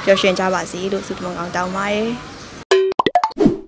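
A young woman speaks calmly into a microphone close by.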